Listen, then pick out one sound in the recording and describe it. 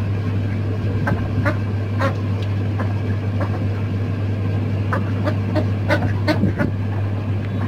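Ducks and chickens peck and clatter at food in a metal bowl.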